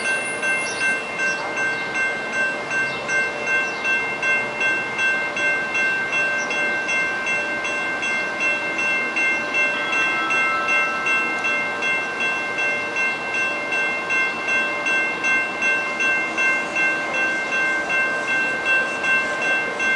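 A railroad crossing bell rings rapidly and steadily.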